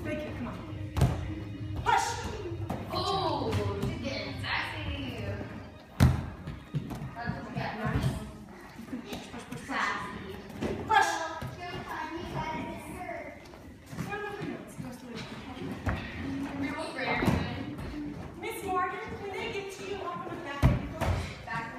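Bare feet thump on a padded mat.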